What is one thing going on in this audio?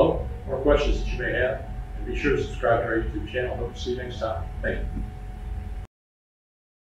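An elderly man speaks calmly and clearly to the listener, close by.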